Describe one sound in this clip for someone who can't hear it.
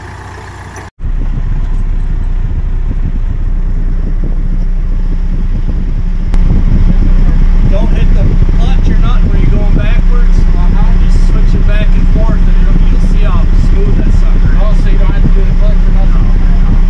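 A diesel tractor engine idles, heard from inside the cab.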